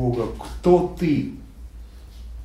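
An elderly man speaks calmly and briefly.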